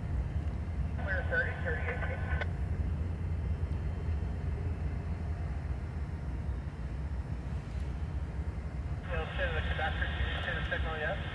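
A train horn blows loudly twice.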